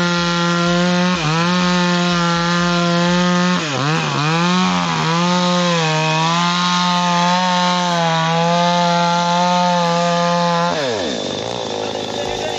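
A chainsaw engine roars loudly, dipping and revving as it cuts through wood, then winds down.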